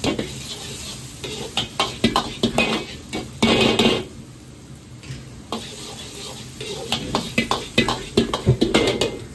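Rice sizzles in a hot wok.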